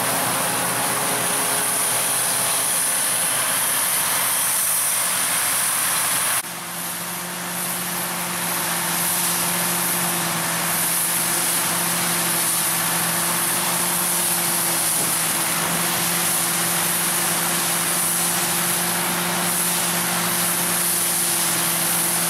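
A tractor engine hums steadily close by.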